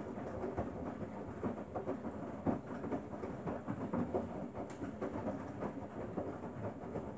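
A front-loading washing machine's drum turns, tumbling wet laundry with a sloshing, thumping churn.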